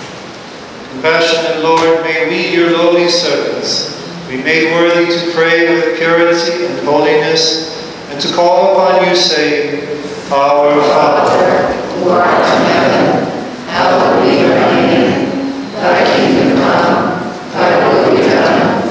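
A man chants in a steady, sung voice through a microphone in an echoing hall.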